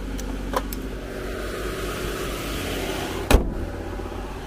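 Hands bump and knock against a car close by.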